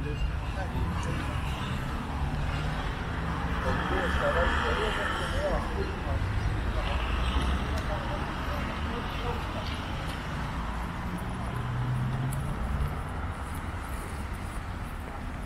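Traffic hums along a nearby road.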